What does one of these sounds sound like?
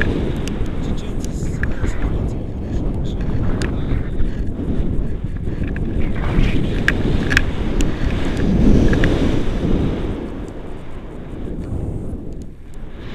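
Wind rushes and buffets against a microphone in flight.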